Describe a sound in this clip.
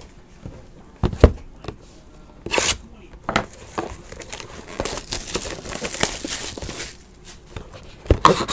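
Hands handle a card box, its cardboard and plastic wrap rustling and tapping.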